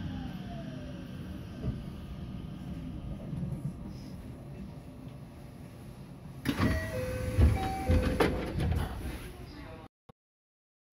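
A train rumbles steadily as it rolls along.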